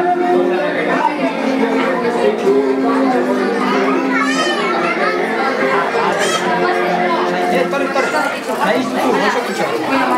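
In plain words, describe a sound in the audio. A young boy speaks loudly with animation close by.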